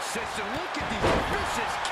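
A wrestler slams onto the mat with a heavy thud.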